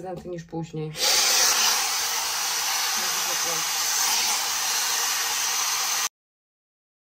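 A hair dryer blows with a steady loud whoosh.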